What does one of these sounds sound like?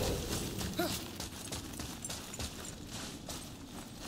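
Heavy footsteps thud on rocky ground.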